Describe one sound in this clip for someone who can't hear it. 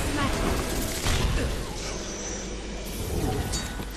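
Magic crackles and bursts with sharp zaps.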